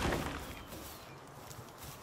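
A pickaxe strikes stone.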